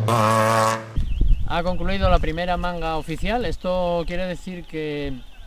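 A man speaks with animation close to a microphone outdoors.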